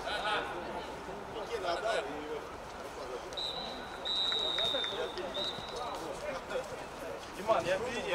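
A football thuds as players kick it on an outdoor pitch.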